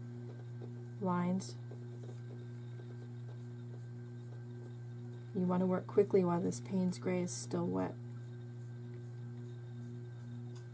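A small paintbrush dabs softly on paper.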